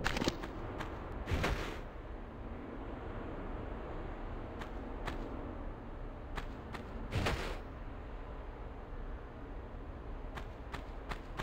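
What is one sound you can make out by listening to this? Footsteps thud on sand.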